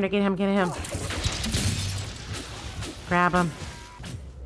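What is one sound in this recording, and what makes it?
A magic spell bursts with a loud crackling whoosh.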